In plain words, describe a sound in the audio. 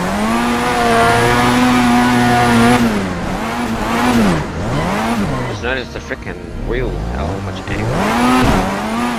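A car engine revs high and rises and falls in pitch.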